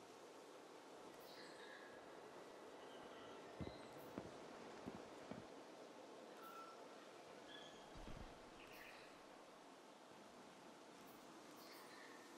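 Soft electronic menu chimes blip now and then.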